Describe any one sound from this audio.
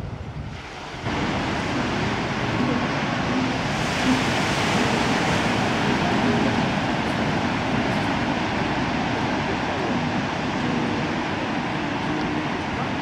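Waves crash and surge far below.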